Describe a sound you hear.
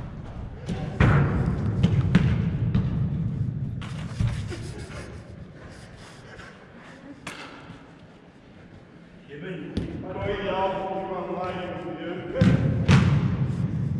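A football is kicked with sharp thuds in a large echoing hall.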